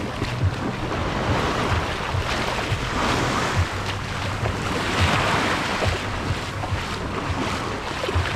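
Small waves wash and fizz onto a sandy shore.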